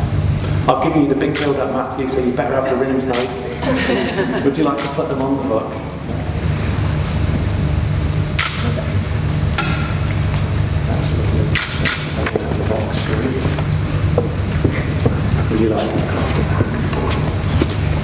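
A man speaks slowly and calmly in a large echoing hall.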